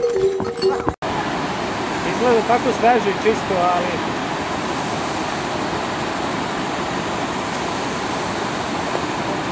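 A stream rushes steadily over rocks.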